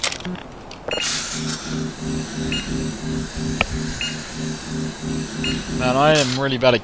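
A health charging station hums with a pulsing, rising tone.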